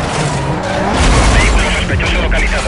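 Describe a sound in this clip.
A car crashes loudly through a wooden structure.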